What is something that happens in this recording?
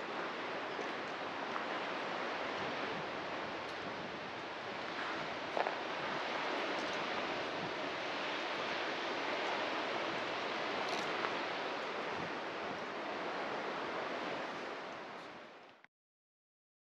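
Wind rushes steadily through trees outdoors.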